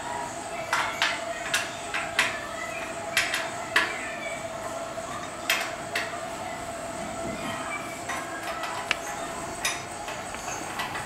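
An electric tapping machine whirs steadily.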